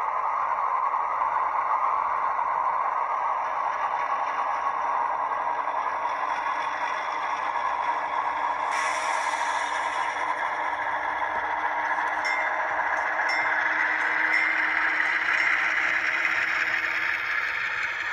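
Model train wheels click and rattle over rail joints.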